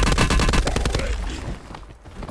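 Rapid gunfire rattles loudly and then stops.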